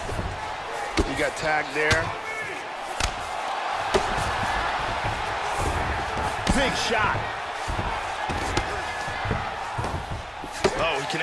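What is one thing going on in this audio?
Fists thud repeatedly against a body.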